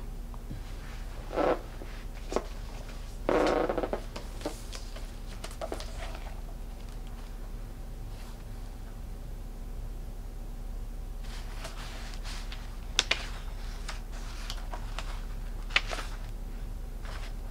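Things rustle and tap close by as they are handled.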